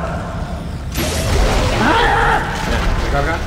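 A gun fires in bursts with sharp blasts.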